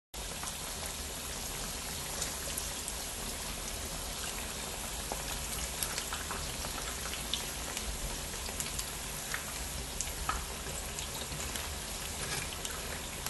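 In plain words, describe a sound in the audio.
Metal tongs click against a pan.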